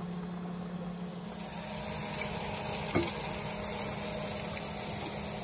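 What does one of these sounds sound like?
Bacon sizzles on a hot griddle.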